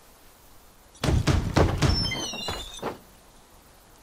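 A heavy wooden door creaks and bangs open.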